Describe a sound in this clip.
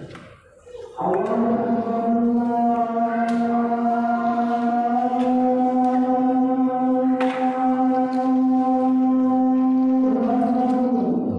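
A man chants in a long, drawn-out melodic voice.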